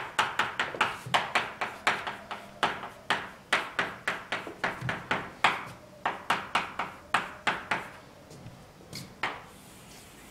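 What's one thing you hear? Chalk taps and scrapes sharply on a blackboard in quick strokes.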